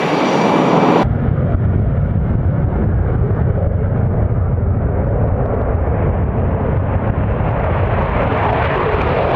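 A jet engine rumbles deeply as a jet takes off and climbs.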